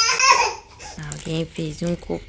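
A baby babbles in short bursts close by.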